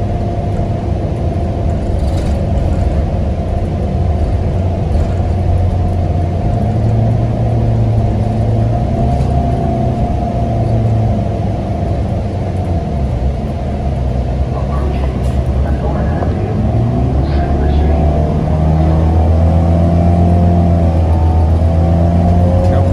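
Rattles and clatters sound inside the moving bus.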